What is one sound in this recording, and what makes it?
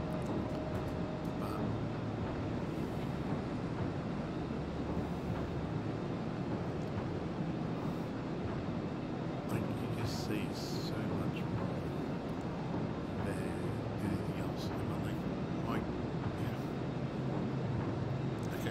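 Water rushes and splashes against a ship's hull.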